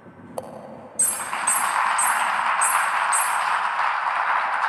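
Bright jingles sound as stars pop up.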